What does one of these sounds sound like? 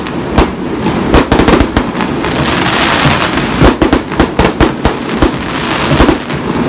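Firework sparks crackle and fizz steadily.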